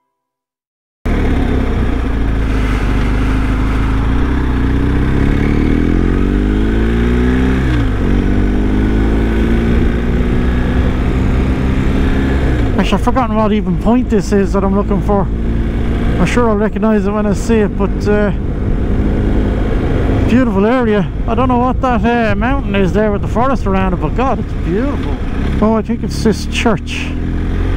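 A motorcycle engine hums, rising and falling in pitch as it revs.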